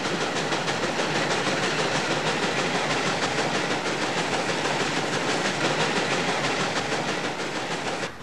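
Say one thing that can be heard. A steam traction engine chuffs rapidly and steadily.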